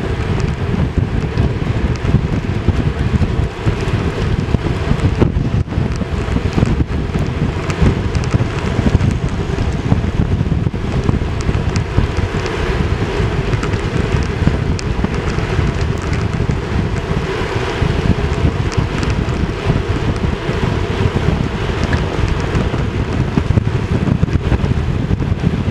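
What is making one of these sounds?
Wind buffets loudly past a microphone outdoors.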